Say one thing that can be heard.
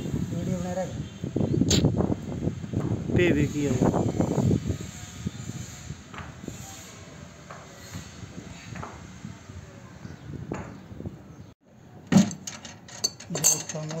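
Metal fittings clink and scrape against each other.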